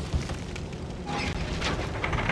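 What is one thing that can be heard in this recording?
A wooden crank grinds and creaks as it turns.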